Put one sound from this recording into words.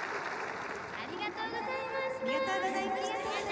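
A young woman speaks into a microphone, heard over loudspeakers.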